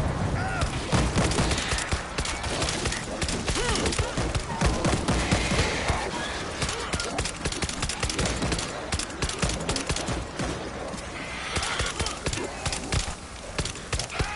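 Rapid gunshots crack and echo.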